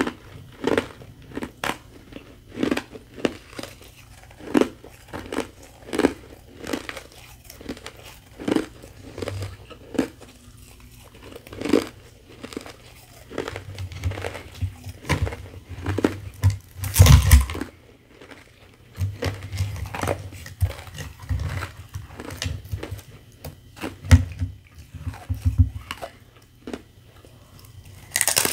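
A woman crunches on shaved ice close to a microphone.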